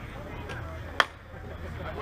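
A bat cracks sharply against a softball.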